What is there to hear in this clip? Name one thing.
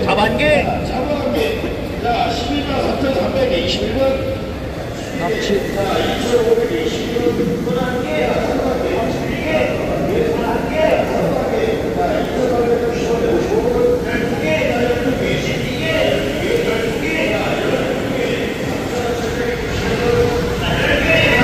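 Water runs and splashes steadily in tanks.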